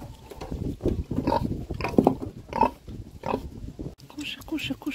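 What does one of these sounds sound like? Pigs grunt and snort close by.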